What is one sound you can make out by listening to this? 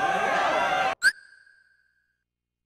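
A short menu chime rings.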